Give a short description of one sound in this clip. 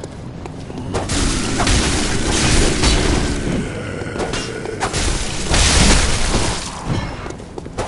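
Blades slash and strike with heavy, rushing blows.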